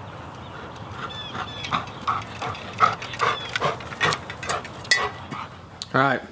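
A man calls out to a dog outdoors.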